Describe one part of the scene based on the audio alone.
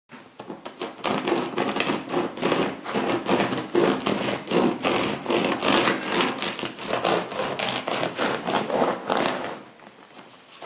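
A bread knife saws through a crusty loaf with a crackling crunch.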